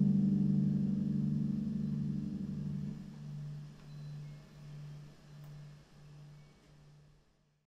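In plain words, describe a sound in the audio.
A harp plays low ringing notes that slowly fade away.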